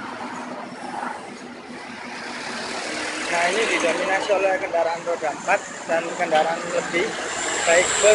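A bus engine rumbles nearby as it pulls slowly forward.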